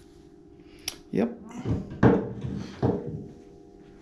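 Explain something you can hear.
A door swings and bumps.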